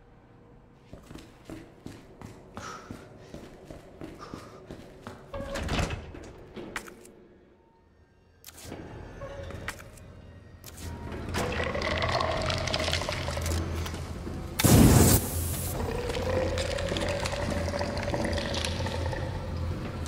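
Footsteps clang on a metal walkway.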